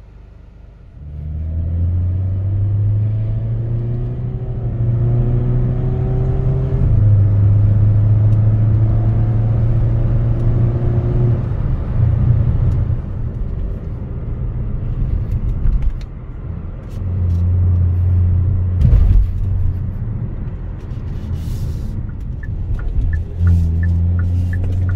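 Tyres hum steadily on the road.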